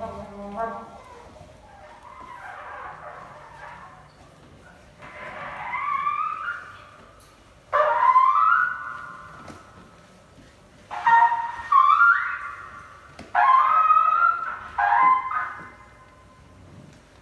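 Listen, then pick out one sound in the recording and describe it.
Electronic sounds sweep and bend in pitch in bursts, played through loudspeakers.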